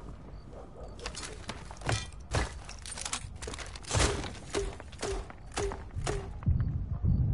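Gunshots crack in short, quick bursts.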